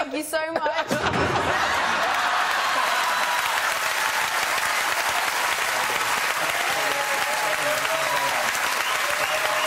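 A studio audience claps and cheers.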